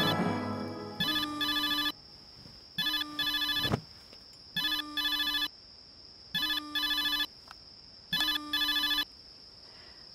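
A mobile phone rings with a repeating electronic tune.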